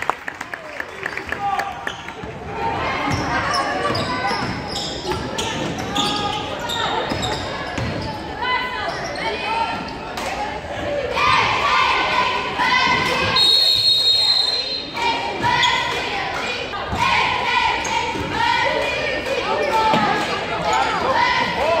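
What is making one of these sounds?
Spectators shout and cheer nearby.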